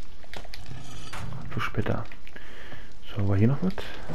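A fire crackles and roars in a furnace.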